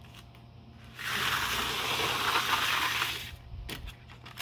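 A hand brushes across a row of wooden pencils with a dry rustle.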